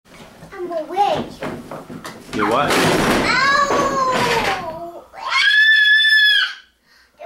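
A young girl talks and sings in a high voice close by.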